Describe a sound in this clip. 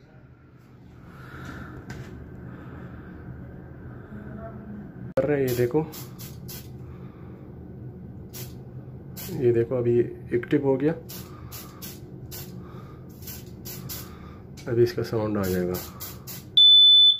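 An aerosol can hisses as it sprays.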